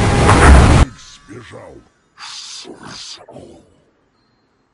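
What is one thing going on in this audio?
Magical whooshing sound effects sweep past in quick bursts.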